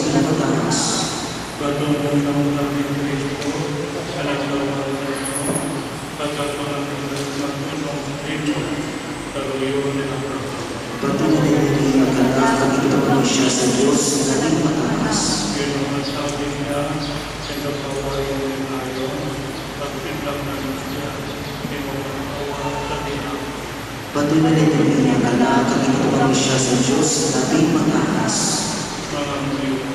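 A crowd of people sings together.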